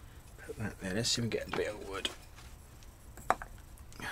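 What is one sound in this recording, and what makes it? A heavy metal block knocks down onto a wooden board.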